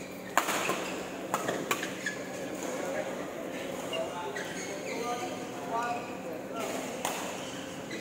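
Shuttlecocks are struck with sharp pops of rackets.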